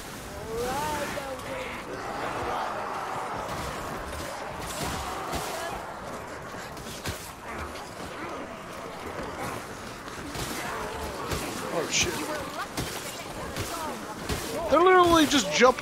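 Blades slash and thud into creatures.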